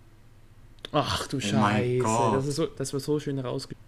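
A young man talks excitedly through a headset microphone.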